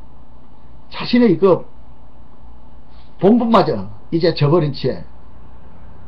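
An older man speaks calmly and close to a microphone, in short phrases.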